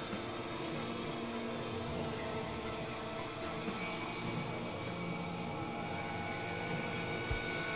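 A synthesizer plays steady, droning notes.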